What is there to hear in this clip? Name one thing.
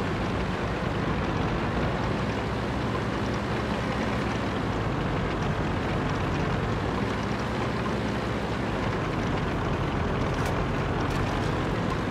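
A tank engine rumbles steadily as the tank drives along.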